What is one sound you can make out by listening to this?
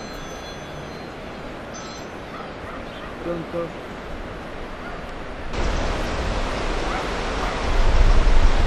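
A swollen river rushes and roars loudly.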